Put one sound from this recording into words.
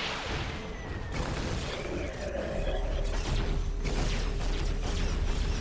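Guns fire in rapid bursts during a battle.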